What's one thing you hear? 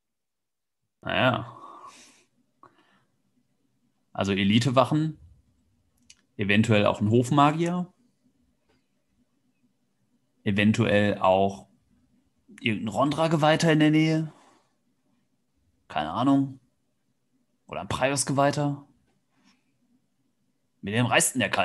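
A man speaks with animation through a headset microphone over an online call, pausing between phrases.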